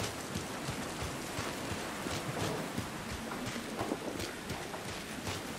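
Footsteps swish steadily through tall wet grass.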